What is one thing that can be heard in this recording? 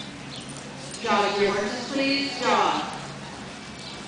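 A horse whinnies loudly in a large echoing hall.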